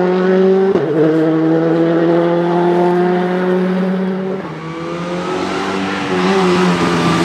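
A rally car engine roars loudly as the car speeds down the road.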